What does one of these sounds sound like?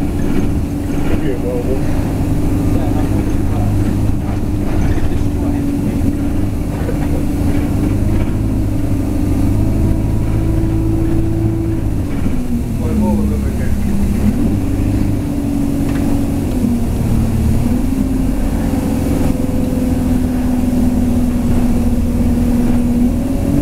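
A train engine hums and rumbles steadily, heard from inside a moving carriage.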